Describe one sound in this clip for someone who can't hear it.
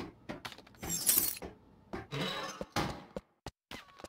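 A door swings shut.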